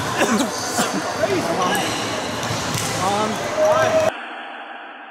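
Table tennis balls click off paddles and tables in a large echoing hall.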